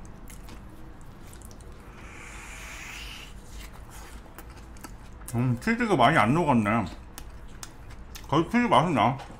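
A young man chews and munches on food close to a microphone.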